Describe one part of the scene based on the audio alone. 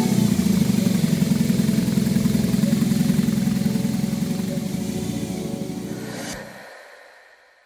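A motorcycle engine idles with a deep, throbbing rumble close by.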